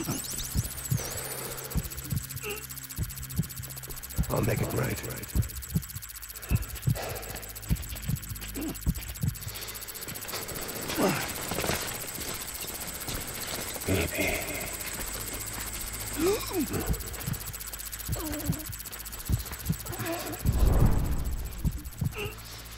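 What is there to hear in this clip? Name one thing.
Footsteps crunch over rocky ground and through brush.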